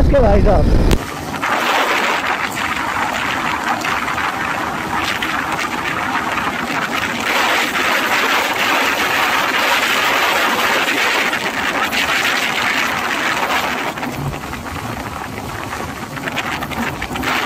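Wind roars loudly past a speeding motorcycle.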